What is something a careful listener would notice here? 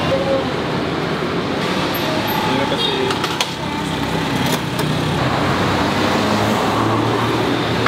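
Plates and cutlery clink on a tray.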